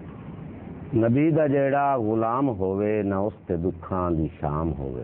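An elderly man speaks loudly and expressively close by.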